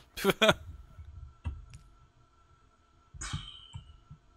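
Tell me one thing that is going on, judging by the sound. A soft game menu click sounds as a window opens.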